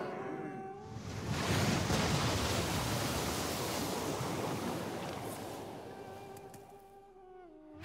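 A magical whooshing swirl rises and fades.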